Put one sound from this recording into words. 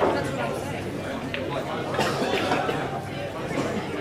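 A pool cue strikes the cue ball.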